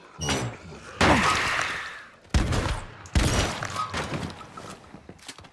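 A crate bursts open with a loud whooshing blast.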